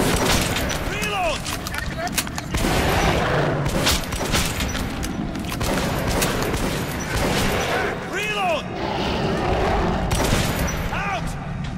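A monster snarls and shrieks.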